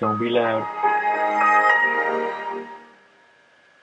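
A computer plays a short startup chime.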